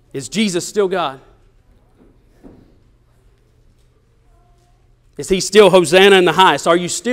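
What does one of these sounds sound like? A man speaks with animation into a microphone in an echoing room.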